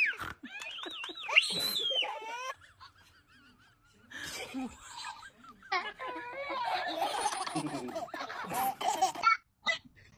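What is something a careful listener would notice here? A baby giggles and laughs.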